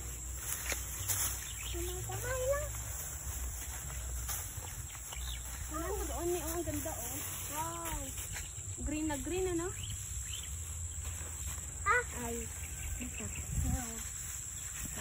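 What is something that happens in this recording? Young girls talk outdoors.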